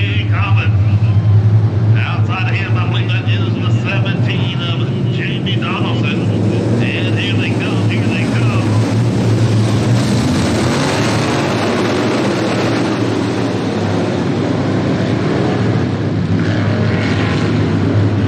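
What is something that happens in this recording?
Race car engines roar in a pack, growing louder as the cars pass close.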